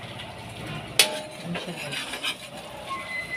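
A metal spatula scrapes against a wok.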